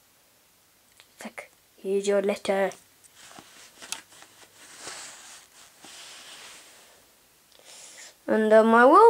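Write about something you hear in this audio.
A small plastic toy figure taps and rustles as it is handled.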